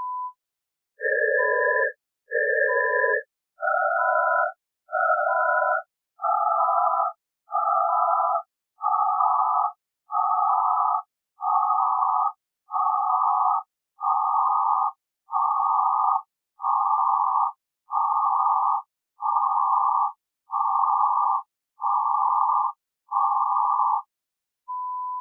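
Short bursts of hissing noise repeat at a steady pace.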